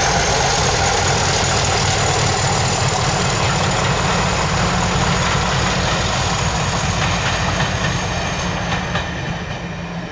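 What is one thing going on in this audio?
Passenger coach wheels clatter over rail joints.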